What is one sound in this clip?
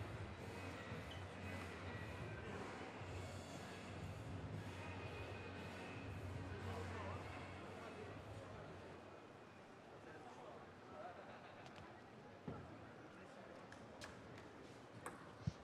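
A table tennis ball is struck back and forth with paddles and bounces on the table.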